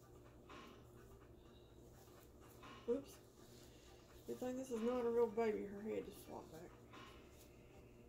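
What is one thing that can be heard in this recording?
Fabric rustles as a baby's clothes are pulled off.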